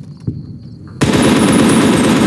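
A rifle fires in a rapid, steady burst.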